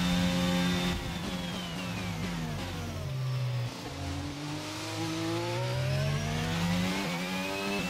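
A racing car engine drops in pitch as the car brakes hard, then revs up again.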